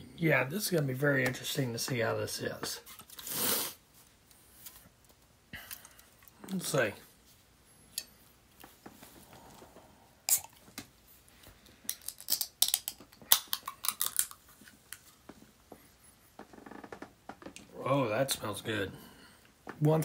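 A drink can rattles and clinks in a hand.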